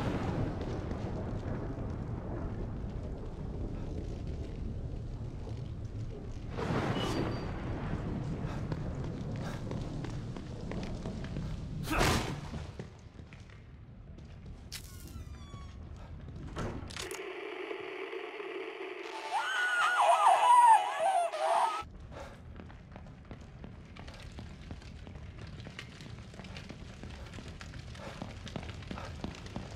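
Footsteps hurry across hard ground.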